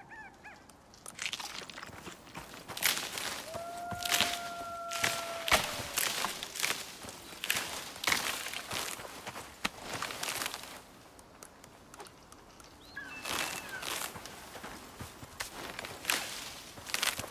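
Leafy bushes rustle and crunch as they are pulled apart by hand.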